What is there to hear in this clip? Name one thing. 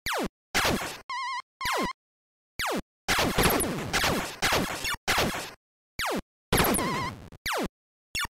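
A warbling electronic alarm trills.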